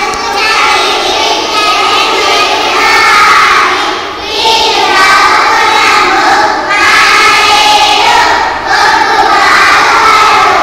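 A group of young children sing together in unison, in phrases with short breaks.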